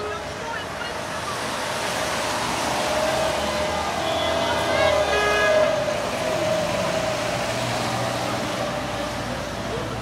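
Car tyres hiss past on a wet road.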